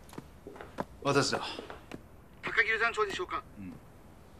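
A man speaks calmly into a telephone.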